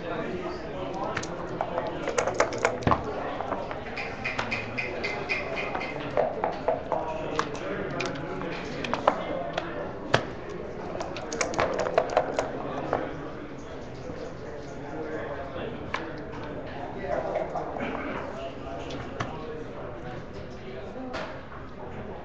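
Plastic game pieces click and slide on a wooden board.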